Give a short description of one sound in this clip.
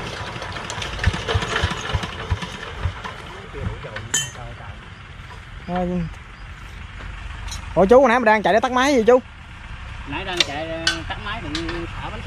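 Metal parts clank and knock as a man works on a machine.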